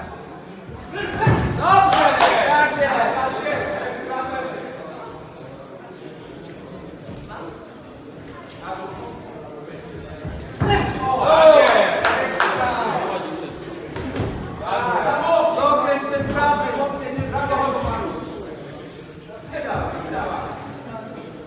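A crowd of spectators cheers and shouts loudly in an echoing hall.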